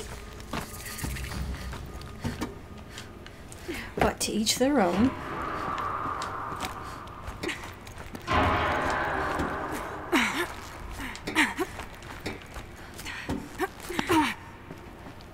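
Boots clank on metal ladder rungs during a climb down.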